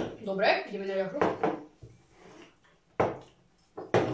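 A glass is set down on a table with a knock.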